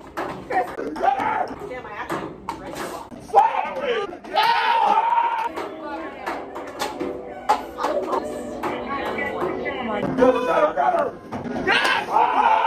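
Several young women shout and cheer excitedly close by.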